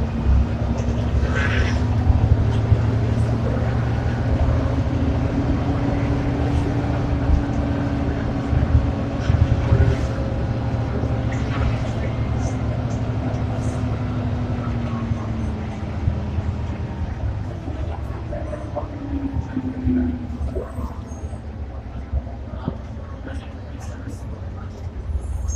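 A bus rattles and creaks as it moves.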